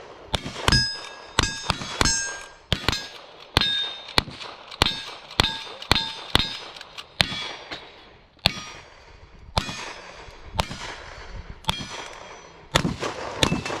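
Bullets strike steel targets with a ringing ping.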